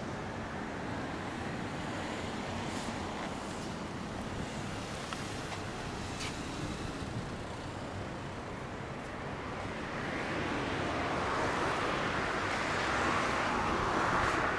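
Wind blows steadily outdoors, growing stronger toward the end.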